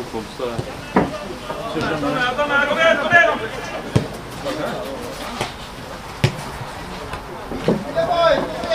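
A football thuds sharply as it is kicked.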